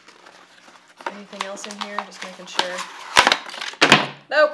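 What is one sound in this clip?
Cardboard packing rustles and scrapes as a woman pulls it apart.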